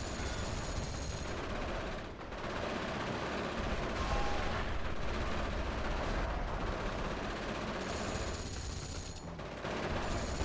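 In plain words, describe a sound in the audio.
Gunfire crackles rapidly.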